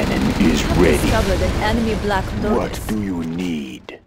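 Tank guns fire in bursts.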